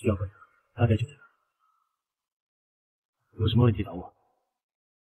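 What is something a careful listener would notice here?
A young man speaks calmly and briefly nearby.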